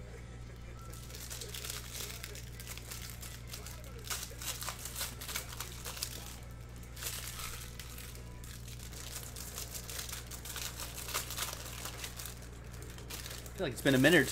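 Plastic wrapping crinkles and rustles as hands tear it open.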